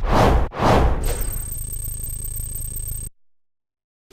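A score counter ticks rapidly.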